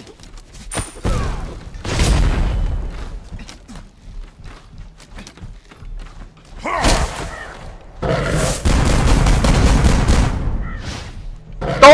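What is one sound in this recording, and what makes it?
Fiery blasts whoosh and roar in bursts.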